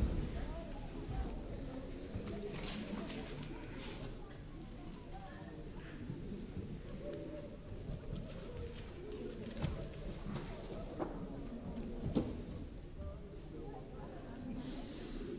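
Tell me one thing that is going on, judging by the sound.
A young woman speaks with emotion in a large hall.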